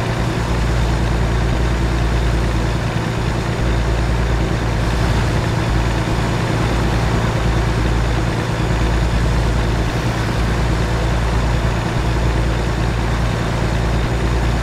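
Tyres roll and hum on a highway.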